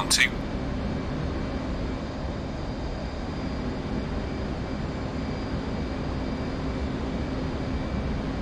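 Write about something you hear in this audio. A jet engine rumbles steadily.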